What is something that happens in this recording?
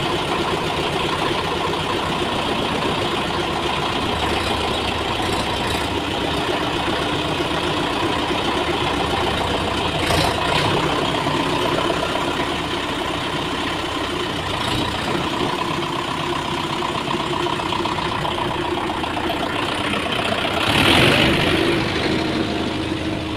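A tractor's diesel engine idles and chugs steadily close by, echoing in an enclosed space.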